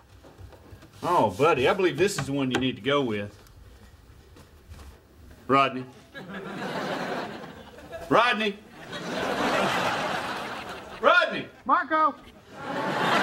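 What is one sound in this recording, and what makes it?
A middle-aged man speaks with animation, close by.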